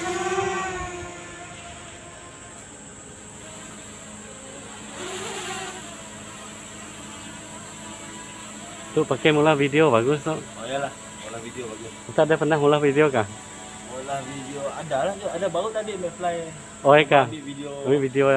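A drone hums steadily overhead at a distance.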